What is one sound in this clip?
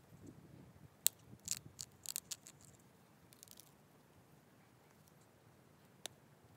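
Small clicks and scrapes come as stone flakes are pressed off a sharp edge.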